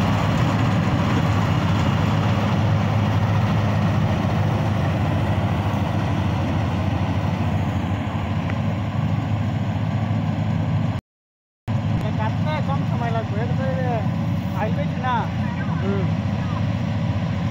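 A combine harvester engine rumbles steadily nearby.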